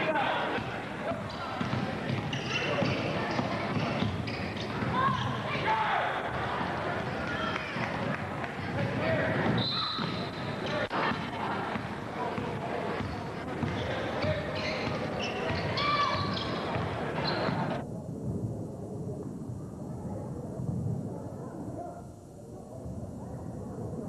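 A crowd murmurs and cheers in an echoing gym.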